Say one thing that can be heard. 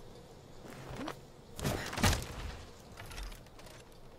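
A sudden scuffle and heavy thud sound up close.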